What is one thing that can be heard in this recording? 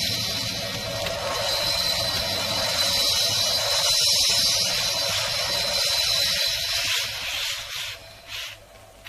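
Flames crackle and hiss.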